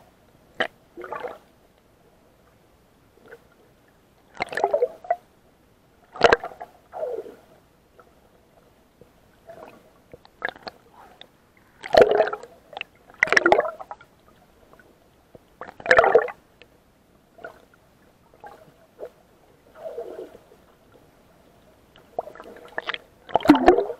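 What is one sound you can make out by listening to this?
Water sloshes and splashes close by in bursts, heard muffled as from under the surface.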